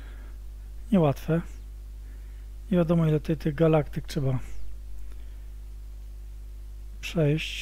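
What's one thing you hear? A middle-aged man speaks calmly into a headset microphone, in short bursts.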